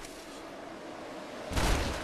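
A bowstring is drawn and an arrow is loosed with a sharp twang.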